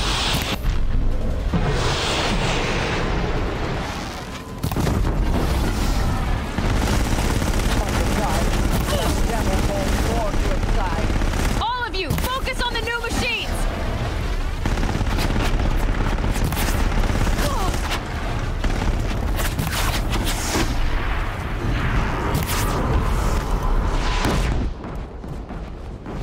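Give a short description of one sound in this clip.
Laser beams and energy shots crackle and zap.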